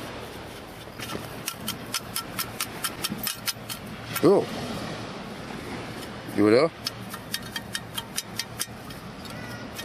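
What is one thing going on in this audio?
Coins and sand rattle and clink in a metal scoop as it is shaken.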